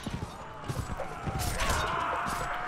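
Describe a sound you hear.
A musket fires with a loud bang.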